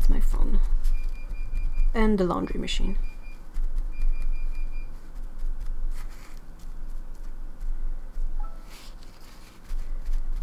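A tissue dabs and rustles softly against paper.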